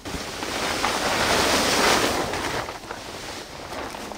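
A heavy tarp rustles and scrapes as it is pulled off.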